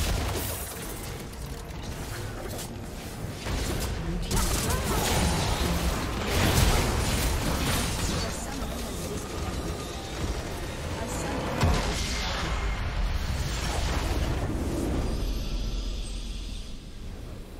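Game spell effects and weapon hits crash and clash loudly.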